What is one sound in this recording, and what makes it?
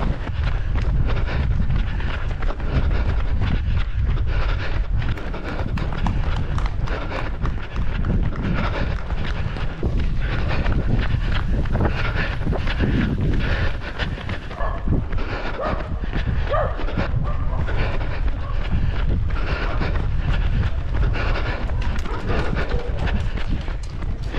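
Running footsteps slap rhythmically on asphalt.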